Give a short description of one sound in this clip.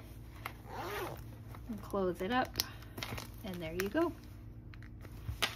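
Cloth rustles as a small bag is handled.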